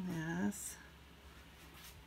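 Fabric rustles softly as it is handled.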